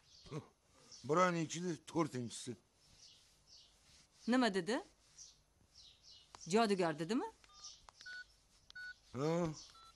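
A woman talks on a phone, speaking close by.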